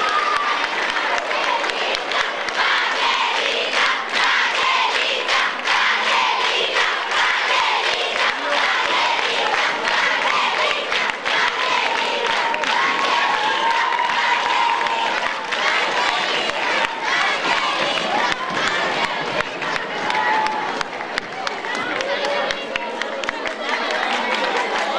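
Young girls shout and cheer excitedly.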